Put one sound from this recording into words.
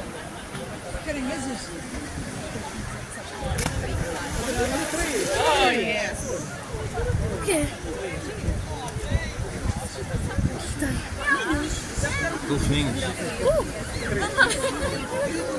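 Gentle waves ripple and lap on open water.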